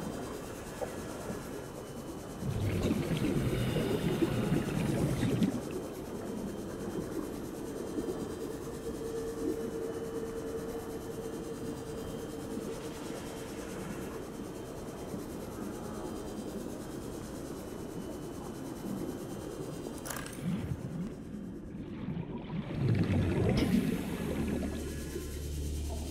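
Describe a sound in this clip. An underwater scooter motor hums steadily.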